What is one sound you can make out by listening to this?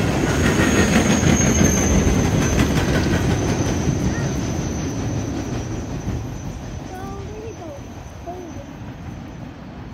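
A freight train rumbles and clatters along the tracks, then fades into the distance.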